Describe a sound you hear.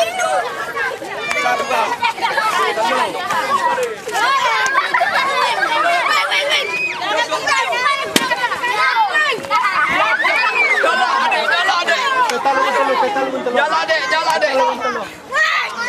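Children laugh loudly.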